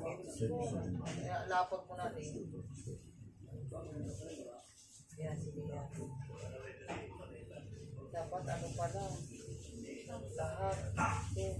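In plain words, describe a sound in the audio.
Women talk with each other nearby.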